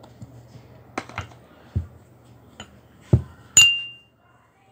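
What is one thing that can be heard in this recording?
A knife taps against a ceramic cup.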